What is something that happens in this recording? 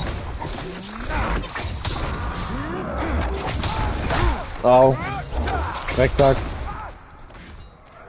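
Swords clash and swish in a fight.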